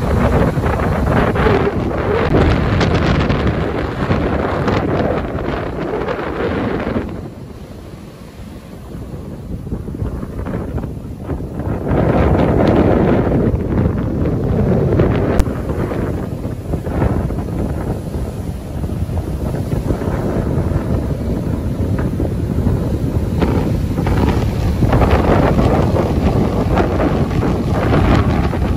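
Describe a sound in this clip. Waves crash and surge onto the shore.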